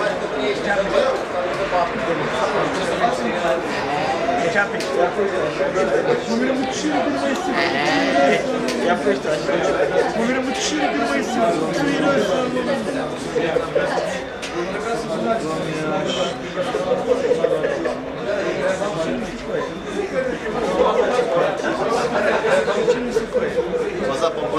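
Several men talk at once, close by, with animation.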